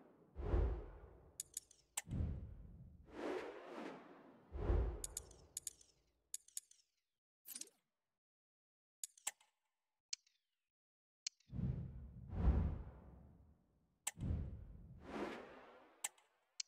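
Soft electronic whooshes and clicks sound as menus change.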